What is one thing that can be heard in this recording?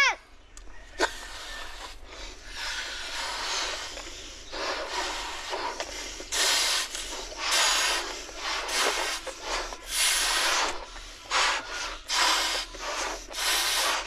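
Boys blow hard into balloons, with breathy puffs.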